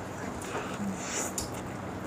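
A man bites into a crunchy burger.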